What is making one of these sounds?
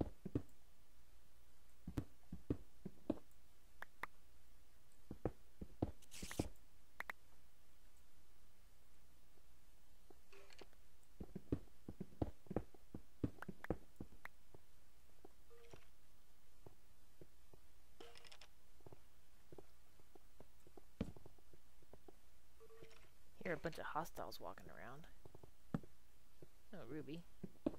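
Footsteps tap on stone at an even pace.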